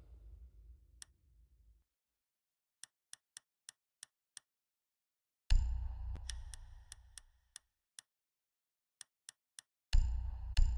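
Short interface clicks tick one after another.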